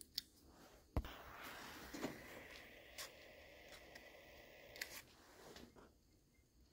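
Paper rustles and crinkles in a hand.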